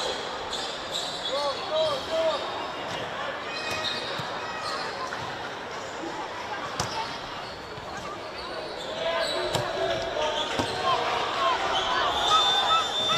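Women players shout to each other across an open field.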